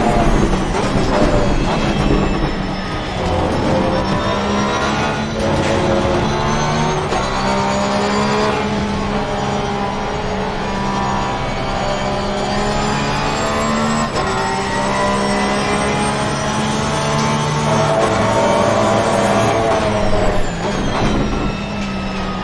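Gear shifts crack sharply between revs.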